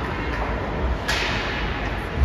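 A puck strikes the boards with a sharp bang.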